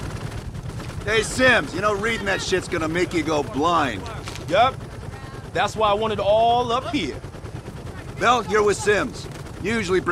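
A man speaks casually nearby.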